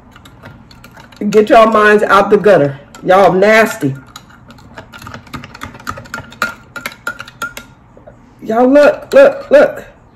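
A spoon clinks softly against a glass while stirring.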